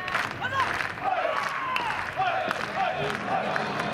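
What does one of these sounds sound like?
A metal bat hits a baseball.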